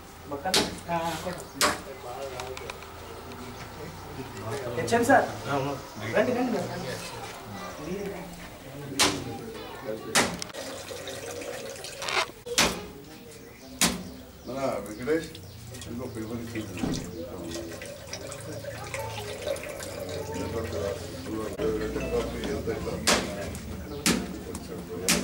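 Several men talk among themselves nearby.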